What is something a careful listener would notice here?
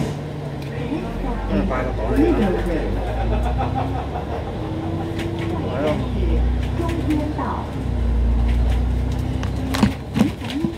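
A bus engine revs up and rumbles as the bus drives off.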